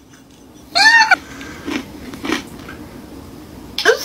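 A woman crunches on a pretzel stick.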